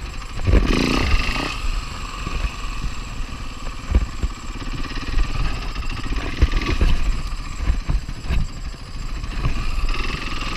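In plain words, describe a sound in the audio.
Tyres thud and rattle over bumpy dirt.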